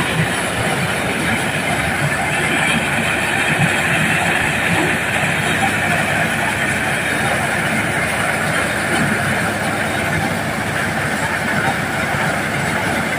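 A threshing machine engine roars loudly and steadily.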